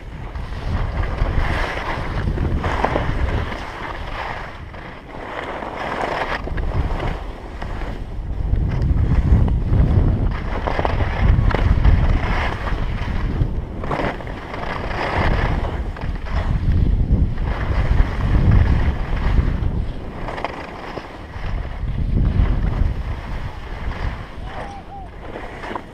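Skis slide and scrape slowly over packed snow.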